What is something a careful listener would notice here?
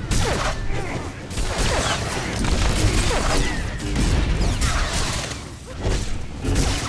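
Blasts and impacts boom repeatedly.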